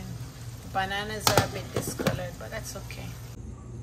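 A metal lid clinks onto a steel pot.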